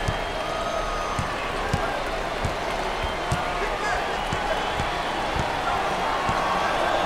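A basketball bounces steadily on a hardwood floor.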